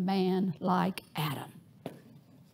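An elderly woman speaks with animation through a microphone.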